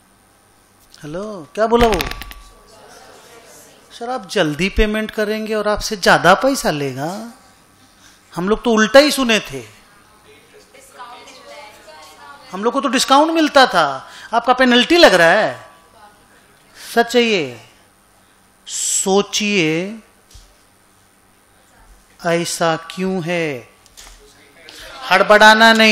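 A middle-aged man speaks calmly into a microphone, pausing often.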